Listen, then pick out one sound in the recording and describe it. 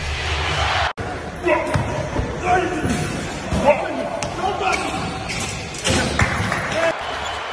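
Men shout and laugh close by in an echoing gym.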